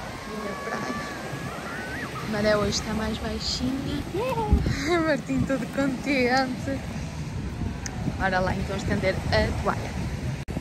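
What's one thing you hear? Children talk and call out excitedly nearby.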